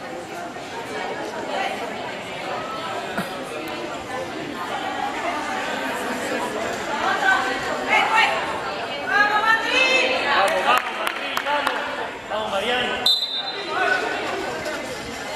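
Young women chatter and call out in a large echoing hall.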